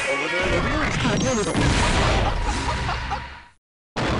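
An explosion bursts with a fiery roar.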